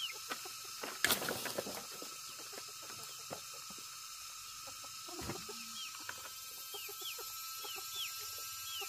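Plastic buckets knock against a stone slab.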